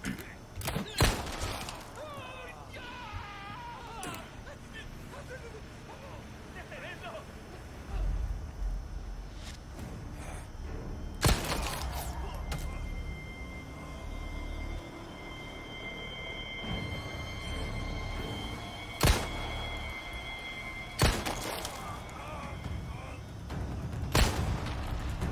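Pistol shots ring out one at a time, with a short echo.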